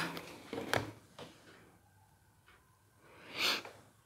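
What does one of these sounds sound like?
Cards slide and tap on a wooden table.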